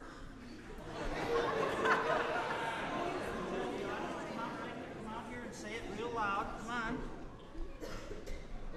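A crowd of people murmurs and chatters in a large, echoing room.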